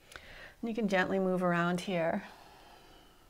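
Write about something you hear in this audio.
A young woman speaks calmly and clearly, close by.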